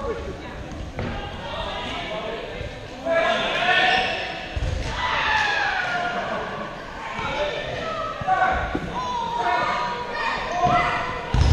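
A man's sneakers squeak and thud on a wooden floor as he runs.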